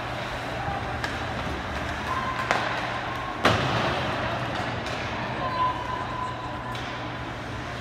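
A hockey stick strikes the puck with a sharp crack.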